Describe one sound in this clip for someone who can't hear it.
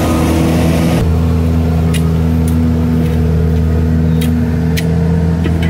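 A shovel scrapes and scoops loose dirt.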